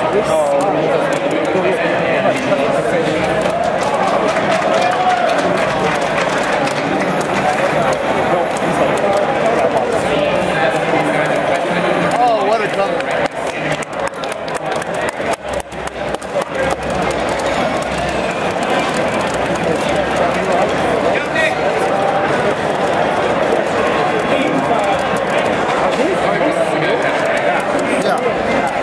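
Punches and kicks thud and smack from a fighting game on a television.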